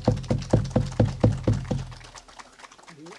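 A hand drum beats in a steady rhythm.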